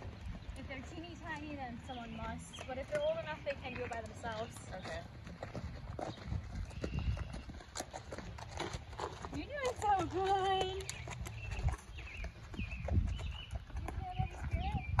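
Horse hooves thud softly on dirt.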